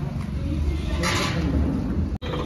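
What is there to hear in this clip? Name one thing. Metal ramps clank.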